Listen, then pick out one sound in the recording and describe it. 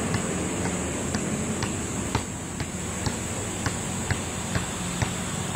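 A basketball bounces rhythmically on pavement.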